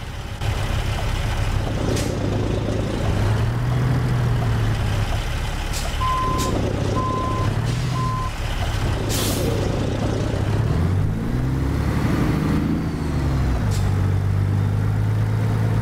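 A truck engine rumbles deeply, revving up and down.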